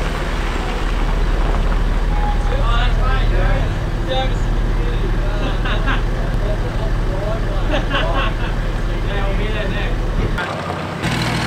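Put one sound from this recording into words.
Men talk at a distance outdoors.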